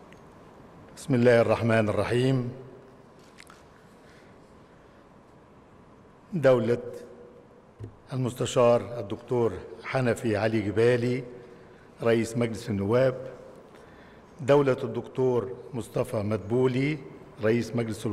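An elderly man speaks slowly and formally into a microphone, heard over loudspeakers in a large hall.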